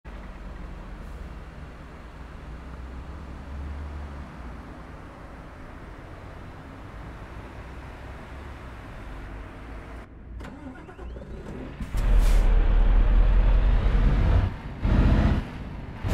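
A heavy truck engine rumbles steadily and grows louder and deeper.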